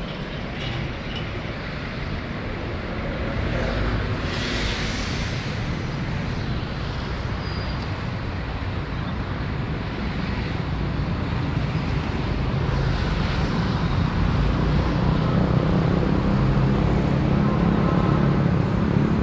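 City traffic rumbles steadily in the distance.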